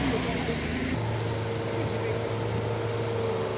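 Truck engines idle and rumble nearby.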